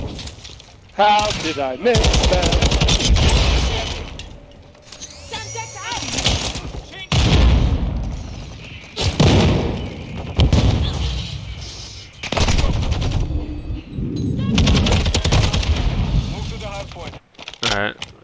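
A rifle fires rapid bursts of gunshots close by.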